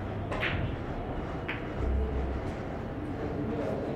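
Billiard balls clack sharply together.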